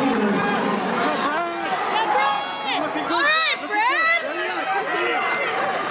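Spectators cheer and shout loudly as runners pass.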